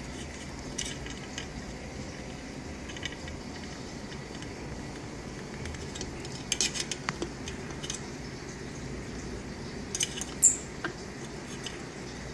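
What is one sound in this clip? A parrot's beak taps and clicks against a metal can.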